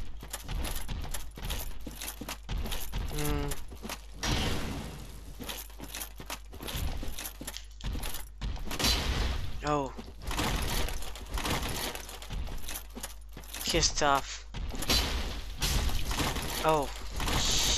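Swords clang and strike in a game fight.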